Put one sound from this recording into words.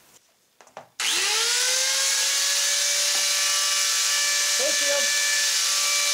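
An angle grinder spins up and whines steadily.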